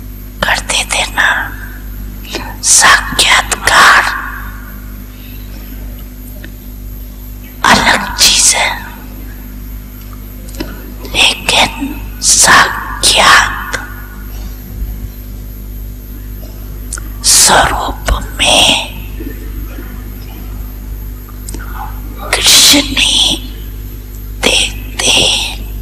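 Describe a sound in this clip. An elderly woman speaks slowly and calmly into a microphone, with long pauses.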